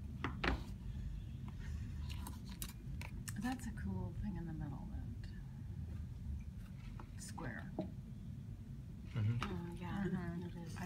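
Stiff paper rustles and taps as hands handle it.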